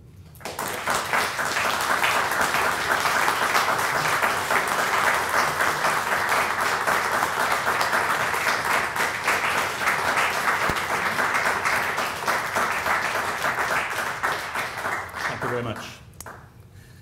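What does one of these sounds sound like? An audience applauds steadily in a room.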